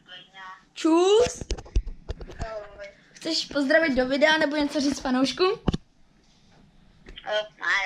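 A young boy speaks excitedly close by.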